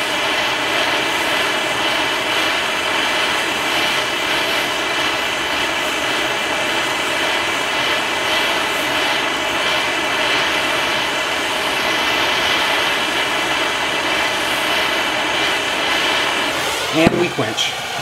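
A gas torch roars with a steady hissing flame.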